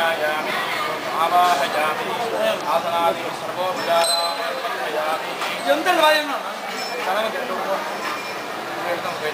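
Several men and women talk nearby at once, with animation.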